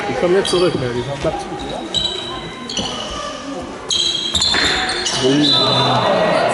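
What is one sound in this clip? Young players shout and call out in a large echoing hall.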